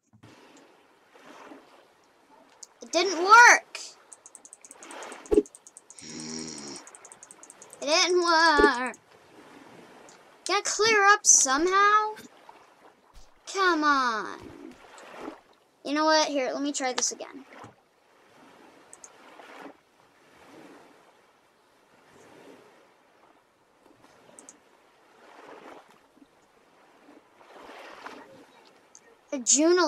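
Gentle waves lap softly at a sandy shore.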